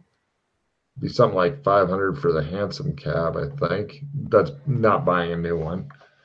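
A middle-aged man speaks calmly through an online call.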